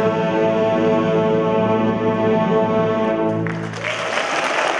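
A violin and an orchestra play a loud sustained final chord in an echoing hall.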